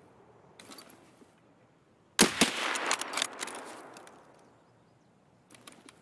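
A rifle rattles as it is raised and handled.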